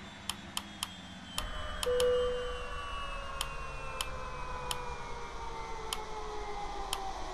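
Buttons click sharply now and then.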